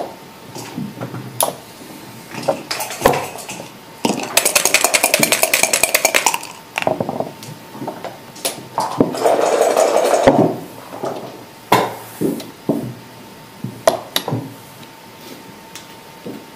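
Game pieces click and clack against a wooden board.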